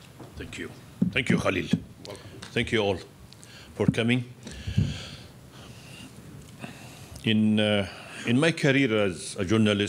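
A man speaks through a microphone, pausing between phrases.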